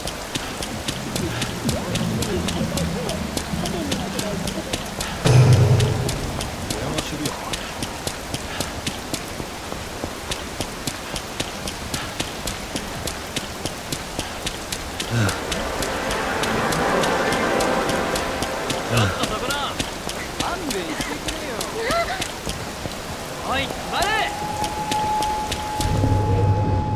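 Rain falls steadily all around.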